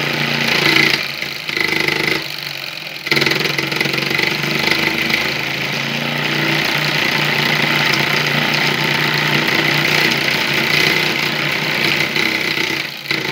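A small electric motor whirs steadily as a disc spins at speed.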